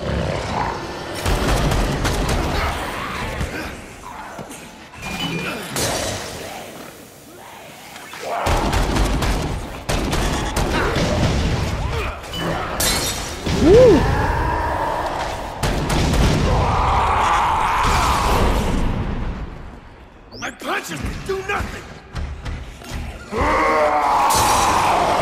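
Blows land with heavy thuds and splatters.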